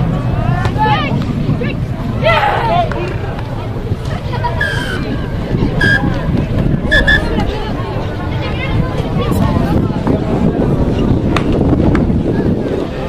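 Rugby players shout to each other across an open field outdoors.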